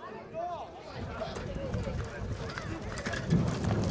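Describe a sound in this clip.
A sulky's wheels roll and rattle over grass.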